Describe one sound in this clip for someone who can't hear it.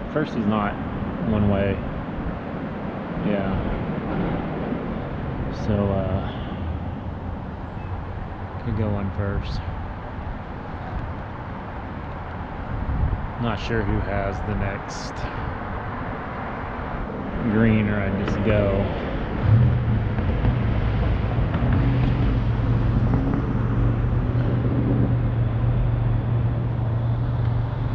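A car drives along a city street.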